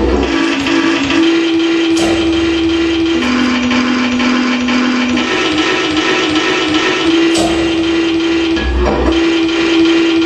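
Electronic drones and tones hum steadily from loudspeakers, shifting in pitch.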